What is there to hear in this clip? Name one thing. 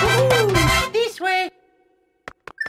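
A cheerful game fanfare plays a level-complete tune.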